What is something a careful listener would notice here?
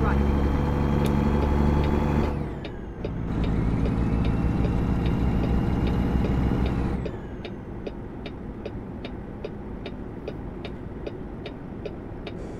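A truck engine drones steadily, dropping off briefly as gears change.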